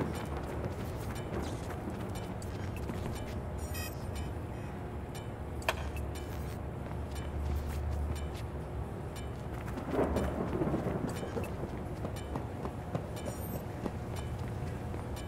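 Footsteps shuffle softly over hard ground.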